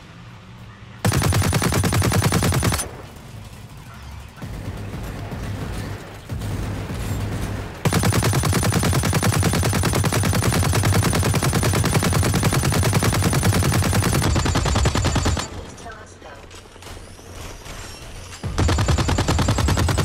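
Rapid gunfire rattles loudly in bursts.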